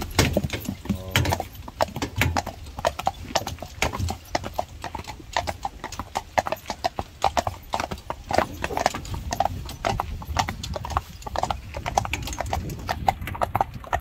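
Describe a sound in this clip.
Carriage wheels rumble and rattle over the road.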